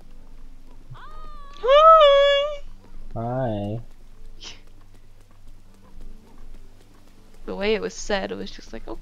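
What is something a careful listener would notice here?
A woman talks and laughs into a microphone.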